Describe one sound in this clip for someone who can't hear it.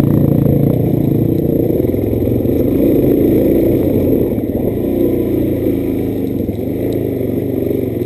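Tyres rumble over a bumpy dirt trail.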